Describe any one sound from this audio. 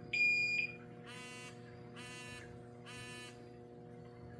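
A handheld electronic device beeps several times.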